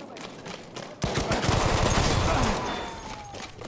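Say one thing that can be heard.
Explosions boom loudly and rumble.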